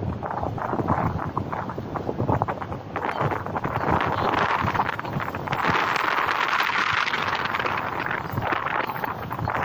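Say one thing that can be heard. Wind blows hard and buffets outdoors.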